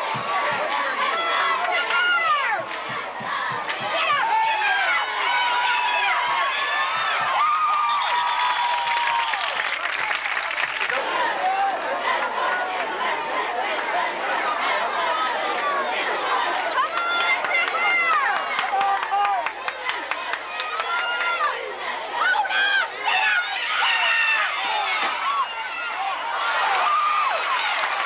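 A large crowd cheers and shouts from the stands.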